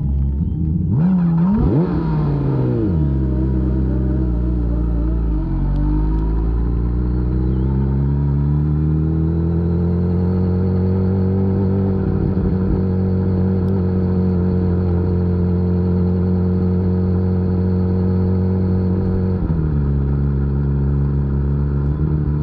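An inline-four superbike accelerates hard, its engine note rising.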